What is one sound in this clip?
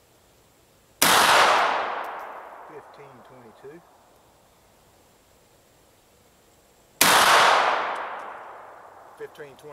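A rifle shot cracks loudly and echoes away through the woods.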